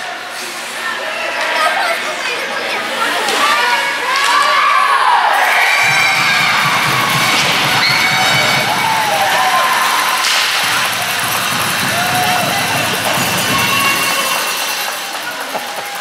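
A crowd cheers and shouts in a large echoing rink.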